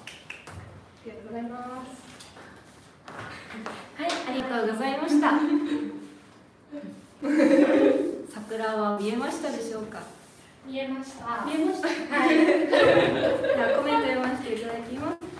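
Young women talk and laugh together with animation.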